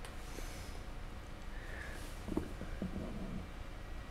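A paintbrush clinks against a small paint pot.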